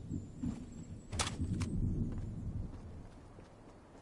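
Footsteps thump quickly on wooden planks.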